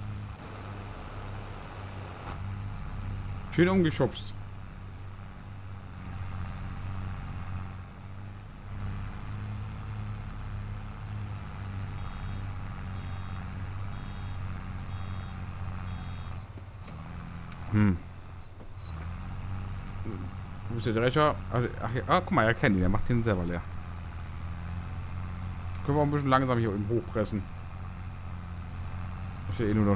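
A tractor engine drones steadily.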